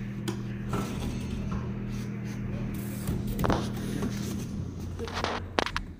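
A plastic bin knocks and scrapes as it is pulled out.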